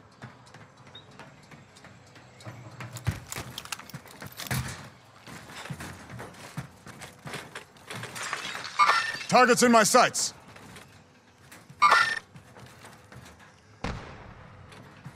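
Footsteps clank across a metal roof.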